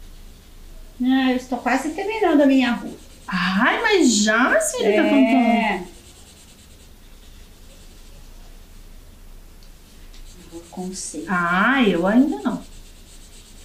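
A woman sings in a high, wavering voice nearby.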